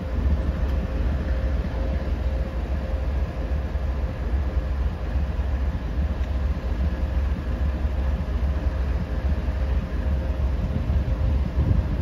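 Diesel locomotives rumble as a freight train slowly rolls past.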